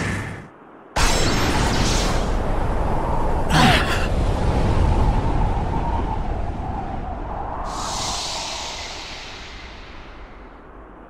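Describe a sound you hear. A huge blast of wind and rock roars and rumbles.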